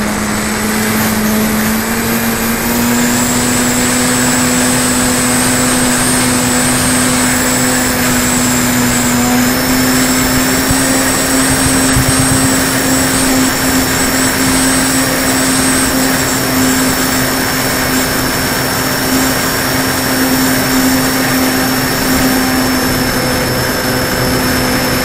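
A model airplane's propeller whirs with a steady hum that rises slightly in pitch.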